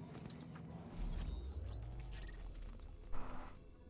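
A soft electronic whoosh sounds as a game map opens.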